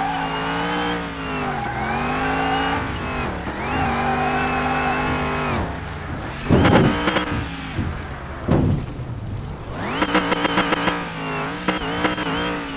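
A car engine roars and revs up and down through gear changes.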